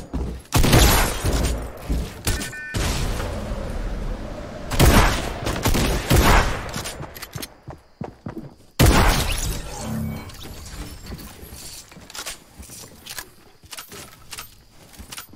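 Wooden walls snap into place with hollow knocks.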